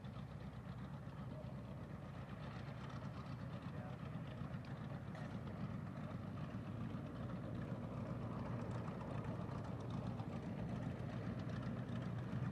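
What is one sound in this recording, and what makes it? A propeller plane's engine rumbles steadily as it taxis closer.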